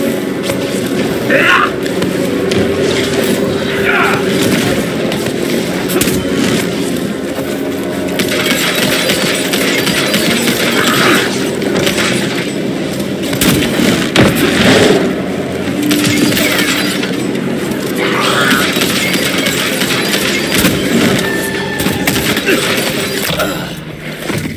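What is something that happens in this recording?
Guns fire in rapid, repeated shots.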